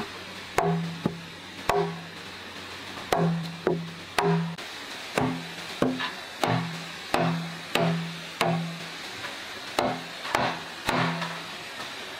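A wooden mallet knocks repeatedly on a hollow wooden board.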